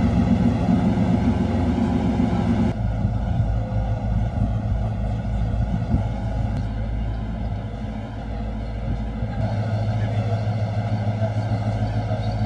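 A boat engine hums underway.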